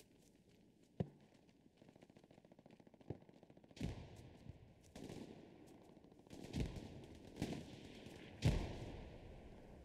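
Explosions boom nearby, one after another.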